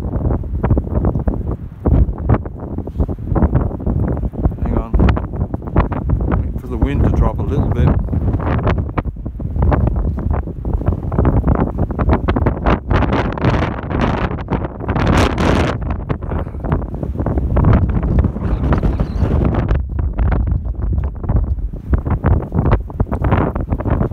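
Strong wind buffets loudly and gustily outdoors.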